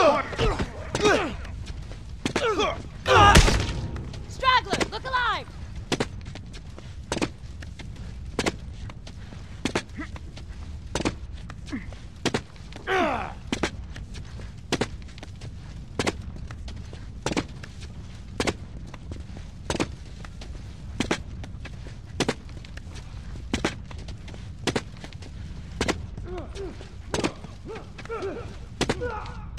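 Footsteps thud on hard ground.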